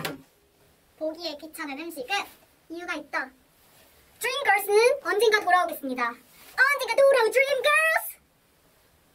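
Young women speak with animation close to a microphone.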